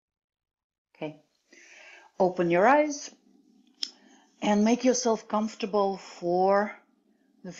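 A middle-aged woman speaks calmly and clearly, close to a microphone.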